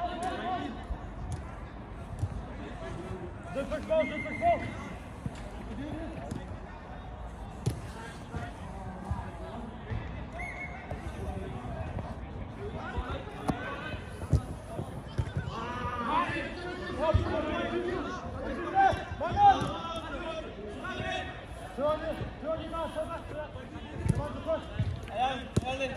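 Young men shout and call out to each other across a pitch.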